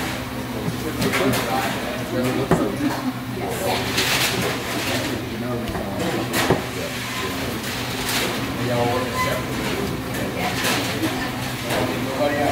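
A knife saws through crusty meat.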